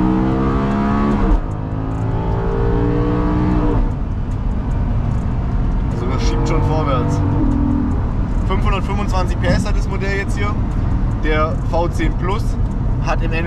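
A car engine hums and revs inside the cabin.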